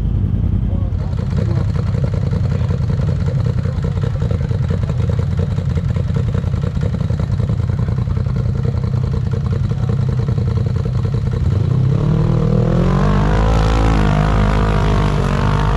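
An off-road vehicle's engine growls and revs up as it crawls over rocks.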